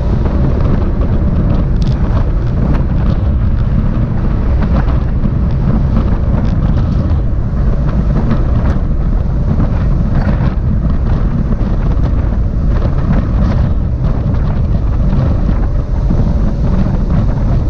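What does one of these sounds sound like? Strong wind roars across a microphone moving fast outdoors.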